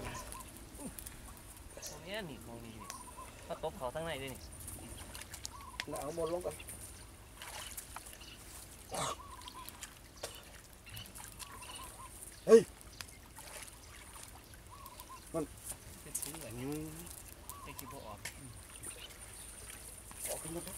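Water sloshes and splashes as men wade through it.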